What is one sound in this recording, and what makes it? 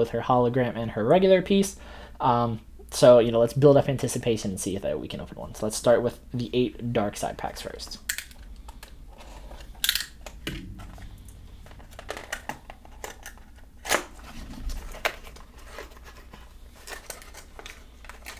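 A small cardboard box rustles and taps as hands handle it up close.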